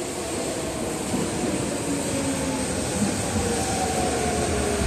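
An electric commuter train pulls into a station, its motors whining as it brakes.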